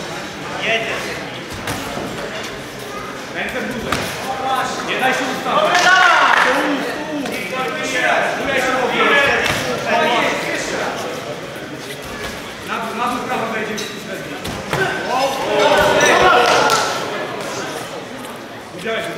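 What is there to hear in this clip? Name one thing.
Men shout loudly to boxers in a large echoing hall.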